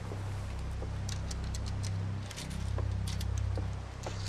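Footsteps tap on wooden boards.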